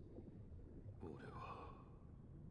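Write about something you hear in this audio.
A young man murmurs faintly, close by.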